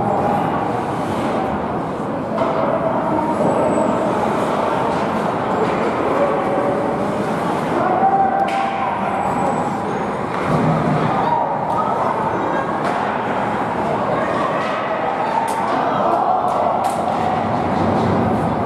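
Young players shout and call out across the rink.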